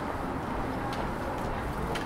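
Walking poles tap on the pavement close by.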